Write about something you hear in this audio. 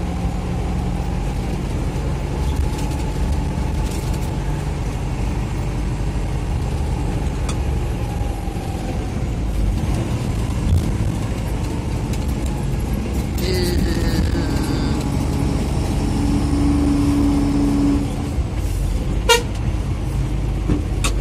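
A bus engine rumbles steadily while driving along a winding road.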